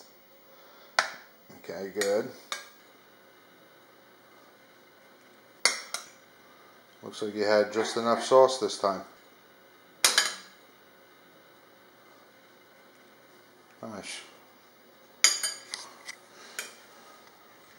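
A metal spoon clinks against a baking pan.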